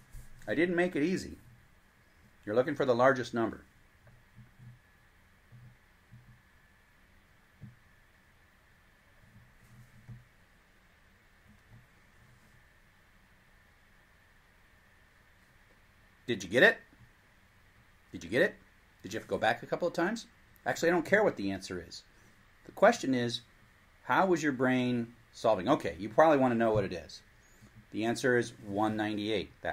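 A middle-aged man speaks calmly and explains something close by, with pauses.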